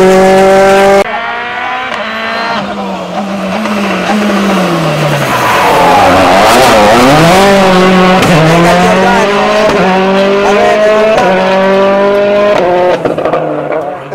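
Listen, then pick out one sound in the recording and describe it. A second rally car engine screams up the road and roars past.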